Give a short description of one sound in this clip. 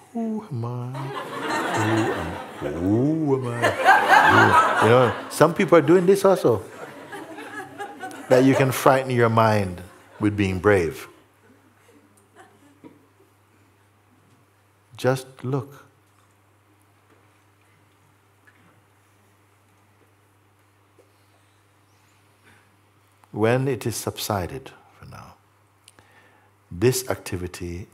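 An older man speaks calmly and thoughtfully, close to a microphone, with long pauses.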